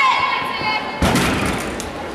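A gymnast lands with a thud on a mat.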